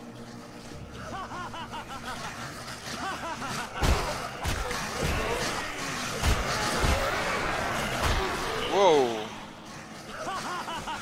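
Zombies growl and groan.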